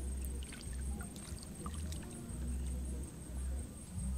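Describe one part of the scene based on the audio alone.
Fish splash and thrash in shallow water.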